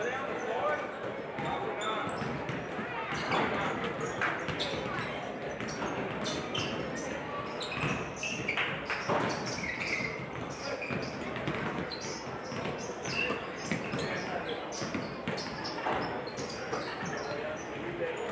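Basketballs bounce on a hardwood floor in a large echoing gym.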